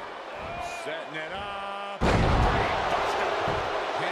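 A heavy body slams down onto a wrestling ring.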